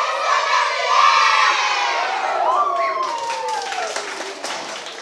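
A group of girls cheers and shouts together loudly in an echoing room.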